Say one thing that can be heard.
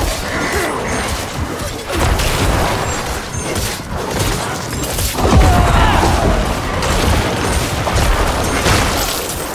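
Magical blasts and heavy impacts crash again and again in a fierce battle.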